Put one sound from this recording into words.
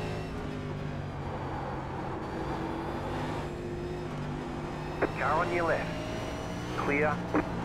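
A race car engine drones steadily, shifting in pitch as it accelerates and slows.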